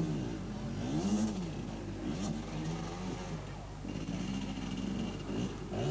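A motorcycle engine revs unevenly close by, its pitch rising and falling.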